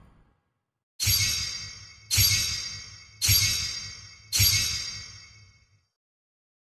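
Bright game chimes ring out one after another as points add up.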